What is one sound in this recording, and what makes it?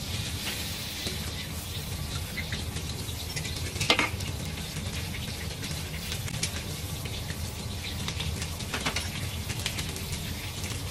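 A gas burner roars low and steady.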